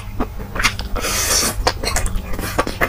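A young man slurps noodles noisily, close to a microphone.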